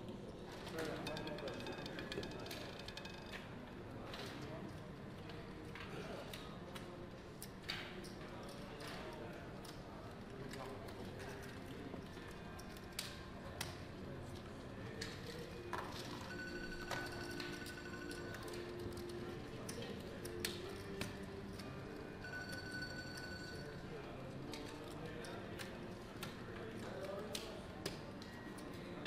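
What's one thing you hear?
Casino chips click and clatter as they are stacked and pushed.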